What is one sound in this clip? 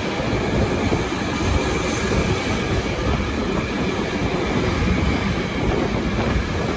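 A freight train rumbles past close by, wheels clattering on the rails.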